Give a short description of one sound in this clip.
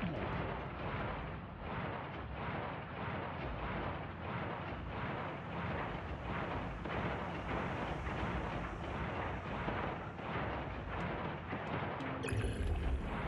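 Water swishes and bubbles as a small fish swims fast underwater.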